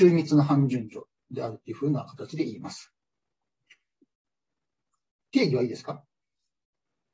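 A man speaks calmly into a microphone, heard as through an online call.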